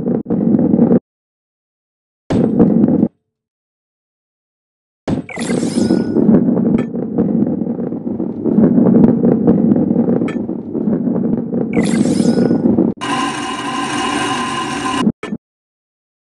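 Balls roll and rumble along a wooden track.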